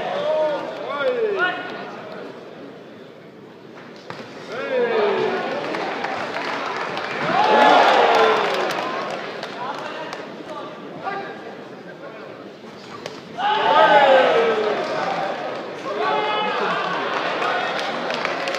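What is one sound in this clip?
Men in the crowd yell out loud, drawn-out calls.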